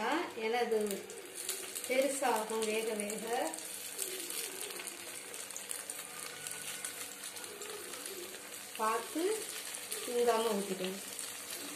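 Batter sizzles quietly in a hot pan.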